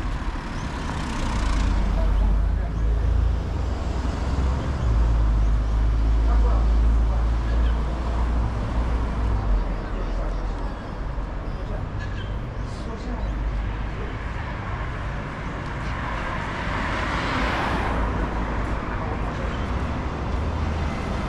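Cars pass by on a nearby street.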